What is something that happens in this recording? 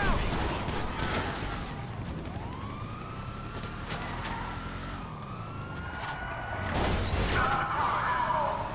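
Tyres screech on asphalt.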